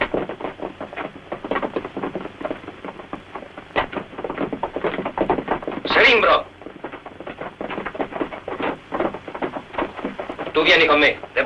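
Horses' hooves clop on the ground nearby.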